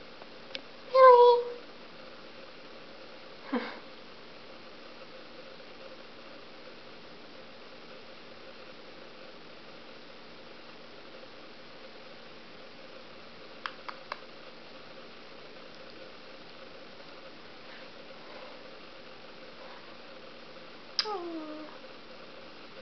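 A guinea pig squeaks in short high calls.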